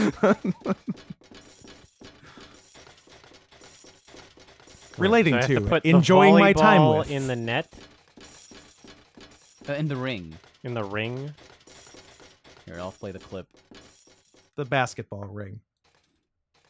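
Footsteps clang on metal stairs and walkways.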